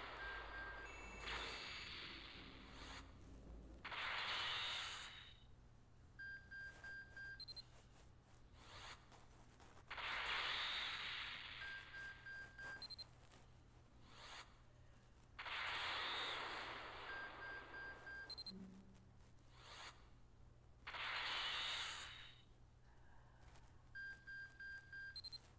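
Short electronic beeps sound in quick runs, again and again.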